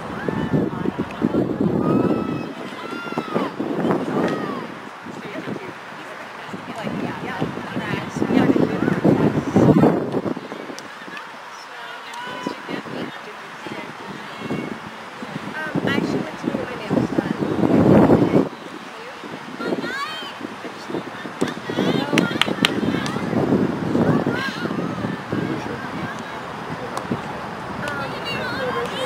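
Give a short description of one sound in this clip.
Girls shout and call to each other outdoors.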